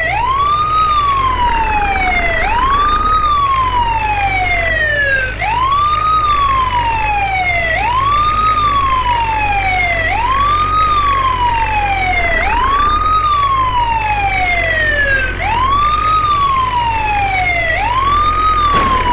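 A vehicle engine hums low and steady.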